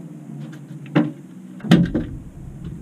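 A landing net knocks against the boat.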